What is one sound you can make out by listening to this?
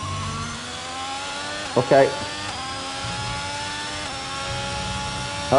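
A racing car engine whines steadily, rising in pitch as it speeds up.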